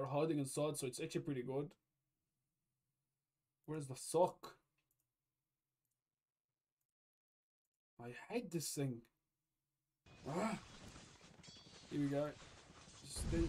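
A young man talks into a close microphone in short bursts with pauses.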